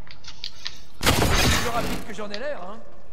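An energy weapon fires in quick zapping bursts.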